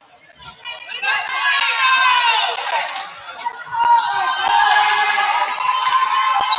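Young women on a team shout and cheer together in a large echoing gym.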